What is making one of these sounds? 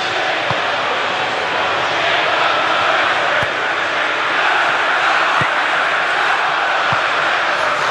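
A football is kicked with dull thumps now and then.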